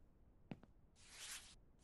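A cloth wipes across a glass window pane.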